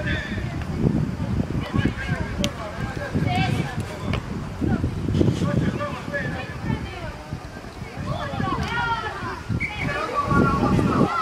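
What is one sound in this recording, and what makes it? Young boys shout and call out to each other outdoors.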